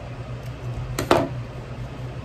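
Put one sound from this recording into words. Scissors clatter down onto a table.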